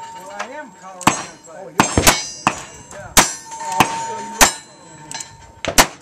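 A revolver fires loud shots one after another outdoors.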